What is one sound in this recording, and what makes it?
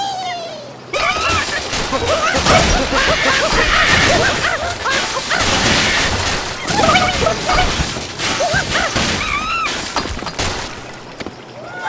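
Blocks of wood and glass crash and shatter as a structure collapses.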